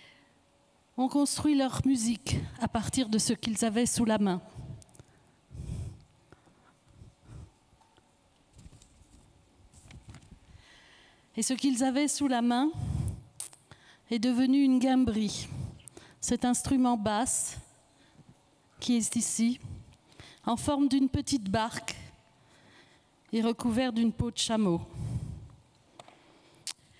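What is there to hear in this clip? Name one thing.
A middle-aged woman reads aloud into a microphone, heard through loudspeakers in a large hall.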